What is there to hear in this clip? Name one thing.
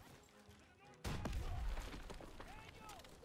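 A heavy gun fires with a deep blast.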